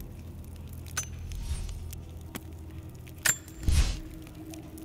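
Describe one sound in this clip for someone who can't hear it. Soft game menu clicks sound now and then.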